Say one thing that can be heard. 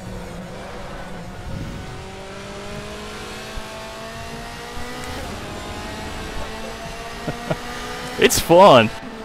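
A racing car engine whines steadily higher as the car speeds up.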